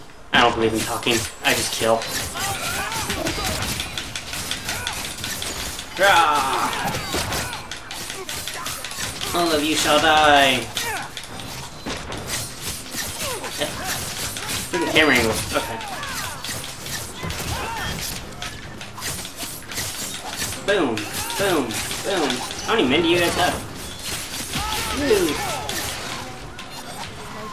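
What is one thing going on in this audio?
Swords clash and magic blasts boom in a game battle.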